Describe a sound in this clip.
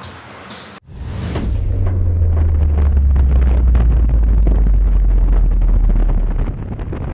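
Wind roars loudly against a skydiver in free fall.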